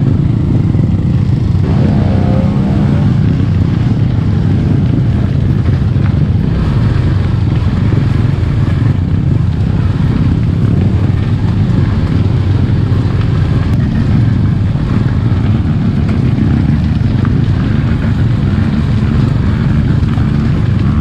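A dirt bike engine rumbles and revs close by.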